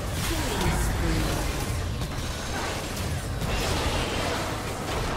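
Fantasy battle sound effects whoosh and crackle with blasts and impacts.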